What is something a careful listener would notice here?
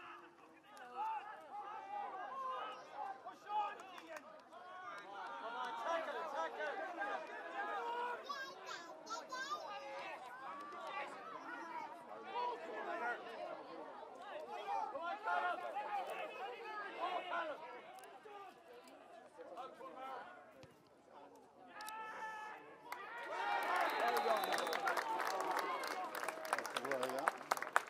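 A crowd of spectators chatters and calls out close by, outdoors.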